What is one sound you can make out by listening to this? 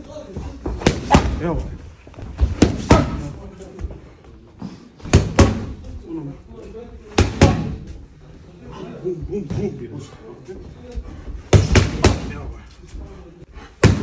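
Boxing gloves smack against focus mitts in sharp bursts.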